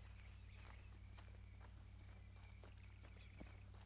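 Footsteps crunch through dry brush.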